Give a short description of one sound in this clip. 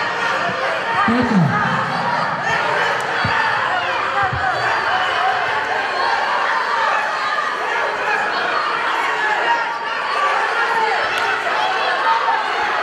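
Wrestlers' feet thud and squeak on a mat.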